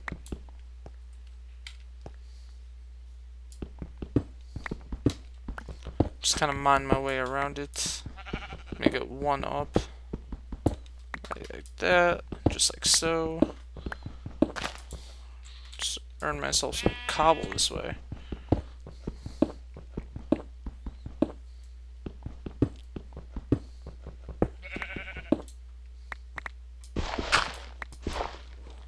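A pickaxe chips at stone in quick taps.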